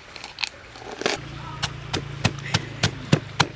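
A wooden pestle pounds rhythmically into a wooden mortar with dull knocks.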